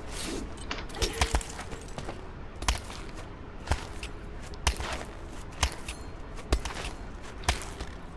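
Ice axes strike and bite into ice again and again.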